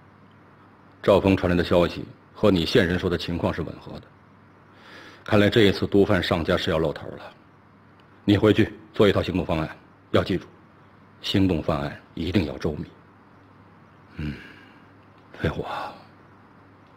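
A middle-aged man gives firm instructions in a steady voice.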